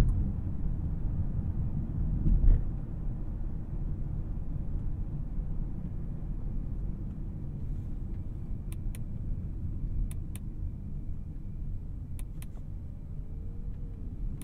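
A twin-turbocharged W12 luxury sedan cruises, its engine a low hum heard from inside the cabin.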